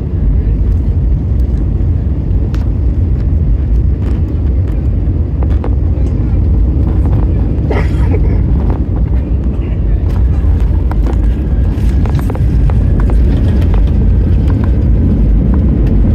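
Jet engines roar steadily inside a plane cabin.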